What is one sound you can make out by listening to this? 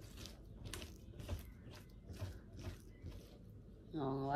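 A knife scrapes and slices through raw fish.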